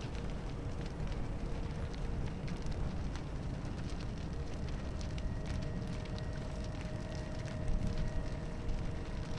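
Footsteps knock on a wooden stage floor.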